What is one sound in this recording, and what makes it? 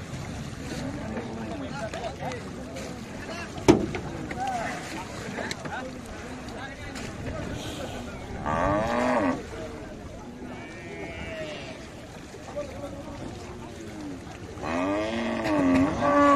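Men talk and call out loudly outdoors.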